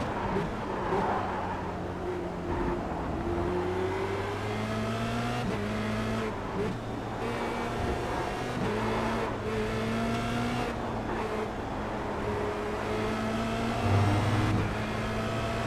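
Other racing car engines buzz nearby.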